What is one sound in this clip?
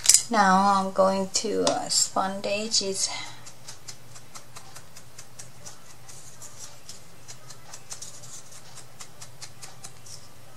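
Paper rustles softly as hands handle it.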